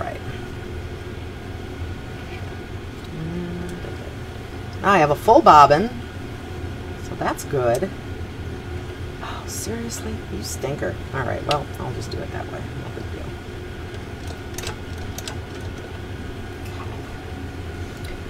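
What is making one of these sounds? A sewing machine hums steadily.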